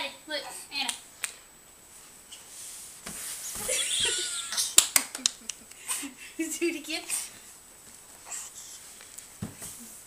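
A woman speaks warmly and playfully close by.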